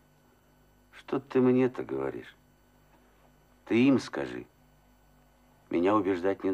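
A middle-aged man answers calmly close by.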